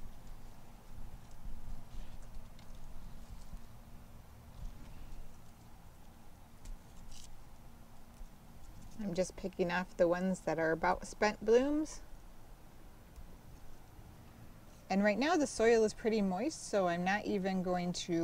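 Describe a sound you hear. Hands rustle softly in potting soil and leaves.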